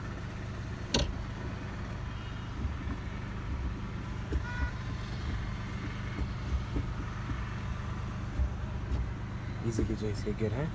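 A gear lever clunks as it shifts between gears.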